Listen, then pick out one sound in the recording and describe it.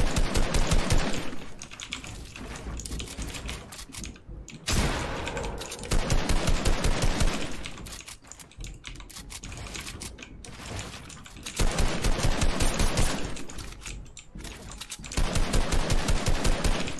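Wooden walls and ramps are built with quick, repeated knocks.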